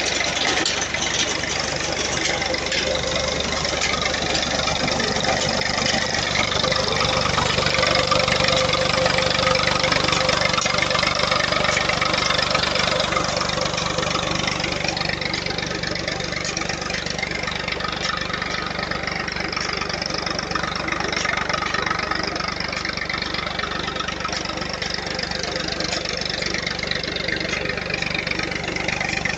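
A tractor engine idles with a steady low rumble nearby.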